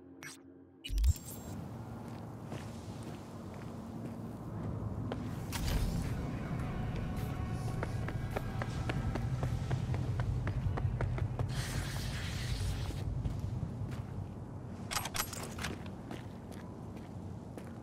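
Footsteps tread across hard ground.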